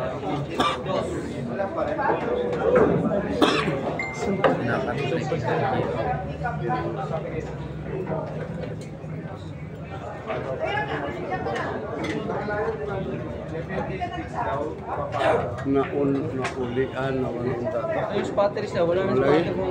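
A crowd of men chatter loudly in a busy hall.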